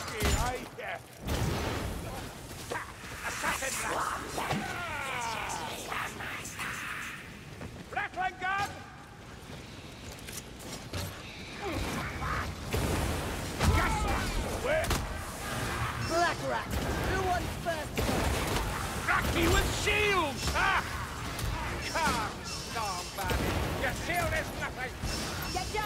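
A gun fires repeated shots.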